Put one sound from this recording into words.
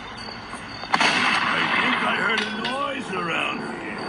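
A wooden door bursts and crashes open.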